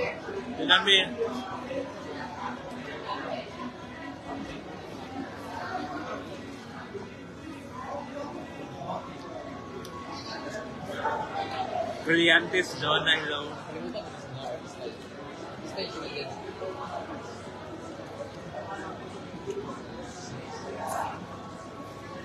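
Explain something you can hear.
A young man speaks close to the microphone.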